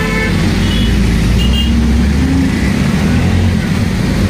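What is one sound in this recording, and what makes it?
Motorcycles drive past close by.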